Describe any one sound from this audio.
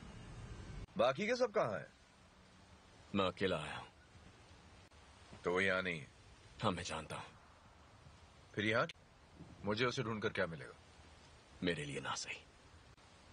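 A man speaks firmly nearby.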